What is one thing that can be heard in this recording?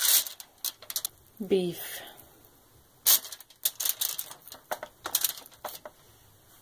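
Aluminium foil crinkles and rustles up close.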